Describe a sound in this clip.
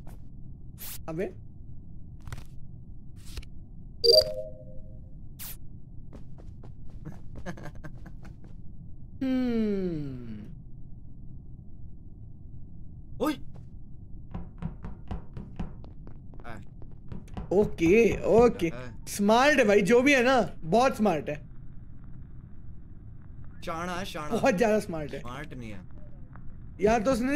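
A young man talks and laughs with animation close to a microphone.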